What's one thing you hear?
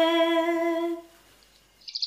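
A woman sings a long, steady note close to a microphone.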